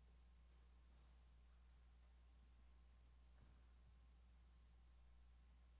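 Footsteps tread softly across a wooden floor in a large quiet hall.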